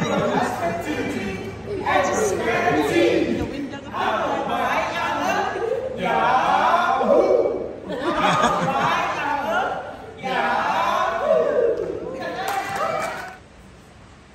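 Several women sing together loudly in an echoing hall.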